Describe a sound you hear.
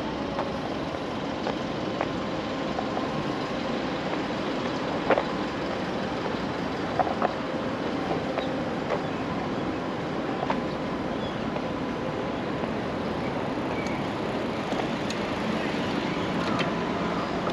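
A steady city hum fills the air outdoors.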